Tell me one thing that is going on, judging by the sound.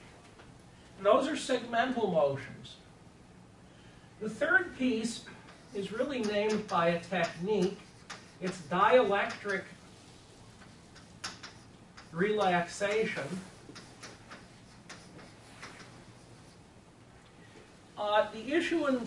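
An elderly man speaks calmly in a large room, with pauses.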